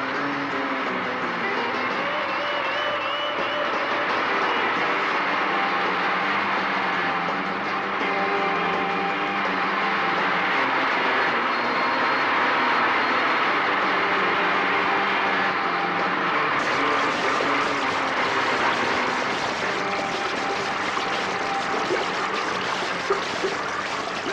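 A seaplane's propeller engine drones steadily.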